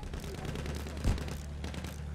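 Gunfire bursts from a plane.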